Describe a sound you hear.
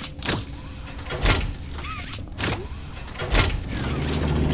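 An electric cable crackles and zaps in short bursts.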